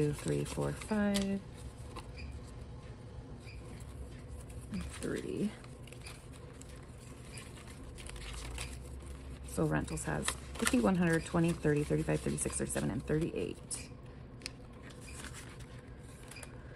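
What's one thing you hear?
Paper bills rustle and crinkle as they are handled and counted.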